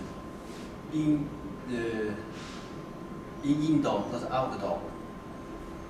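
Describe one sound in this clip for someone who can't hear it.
A young man speaks calmly close by.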